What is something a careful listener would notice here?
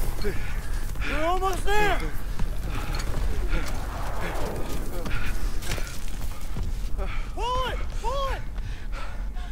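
A young man shouts urgently nearby.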